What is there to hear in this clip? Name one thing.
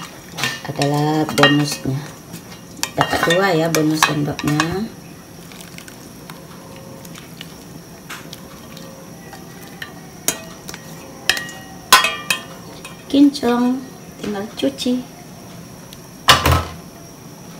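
A metal lid clanks against a pot's rim.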